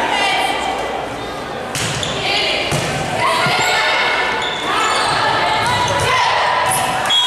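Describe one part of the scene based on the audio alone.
A crowd of young women cheers and shouts.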